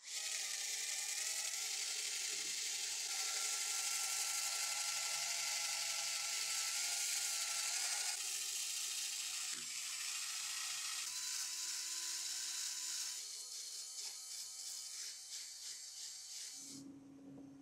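A wire brush wheel scrubs against metal.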